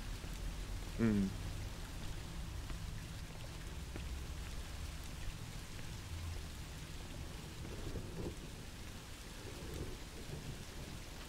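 A man speaks briefly and quietly, close to a microphone.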